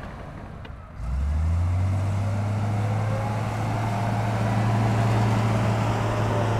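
A bulldozer engine rumbles loudly and steadily, outdoors.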